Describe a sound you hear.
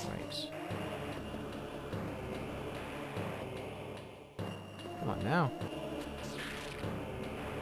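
A game character's blaster fires in short zaps.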